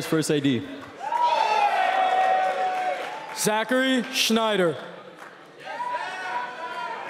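A large crowd of young men shouts together.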